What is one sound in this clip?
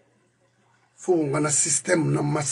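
A middle-aged man speaks forcefully and with animation close to a microphone.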